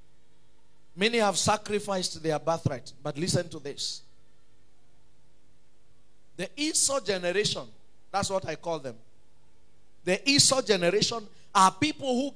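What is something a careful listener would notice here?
A man preaches into a microphone with animation, in short bursts with pauses.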